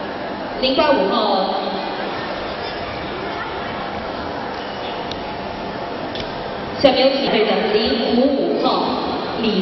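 A crowd of children and adults murmurs and chatters in a large echoing hall.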